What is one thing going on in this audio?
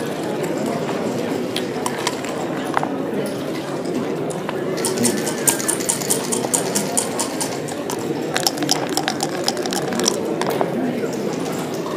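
Dice rattle and tumble across a board.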